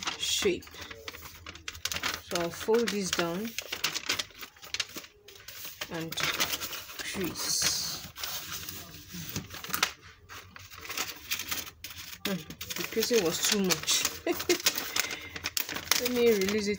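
Stiff paper rustles and crinkles as it is folded and handled.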